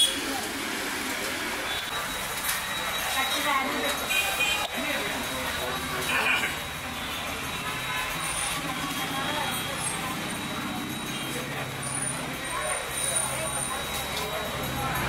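Several men and women chat quietly in the background.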